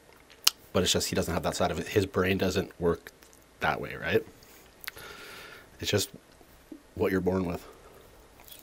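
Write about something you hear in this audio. A man speaks softly and closely into a microphone.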